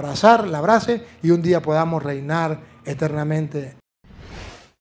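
A middle-aged man speaks with feeling through a microphone.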